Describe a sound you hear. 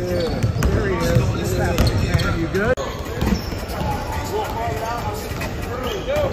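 Several young men chatter and call out across the gym.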